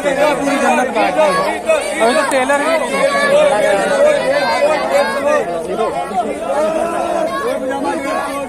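A crowd of people chatters loudly all around, outdoors.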